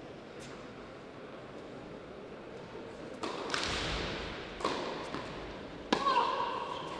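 A tennis ball bounces a few times on a clay court.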